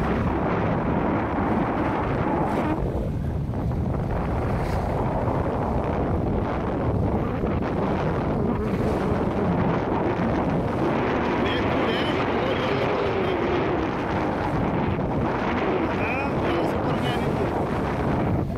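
Strong wind buffets loudly and steadily, outdoors.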